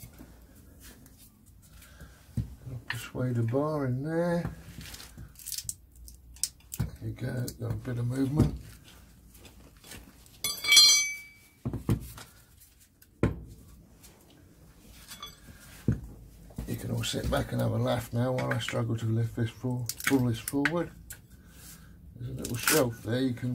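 Metal tools clink and scrape against a metal casing.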